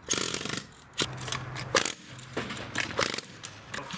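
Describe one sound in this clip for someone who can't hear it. A metal chisel chips and knocks at crumbly plaster.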